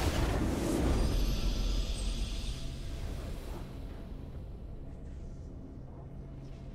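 Triumphant music plays and slowly fades away.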